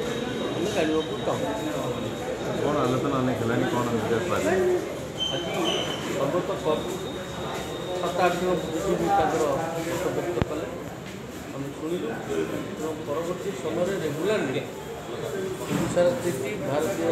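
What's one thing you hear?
An elderly man speaks calmly into several close microphones.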